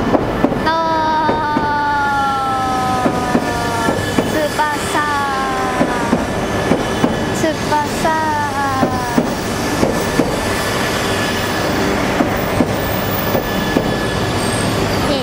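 A high-speed train rushes past close by with a steady roar.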